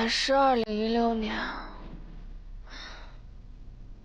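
A young woman speaks softly to herself.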